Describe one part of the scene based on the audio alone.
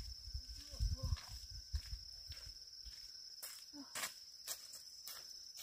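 Footsteps crunch through dry leaves and grass outdoors.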